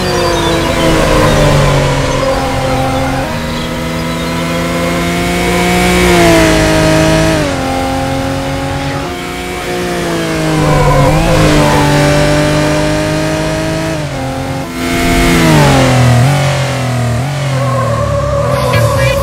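A car engine revs hard and shifts gears, its pitch rising and dropping again and again.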